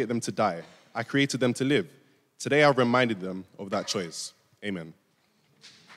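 A young man speaks clearly through a microphone.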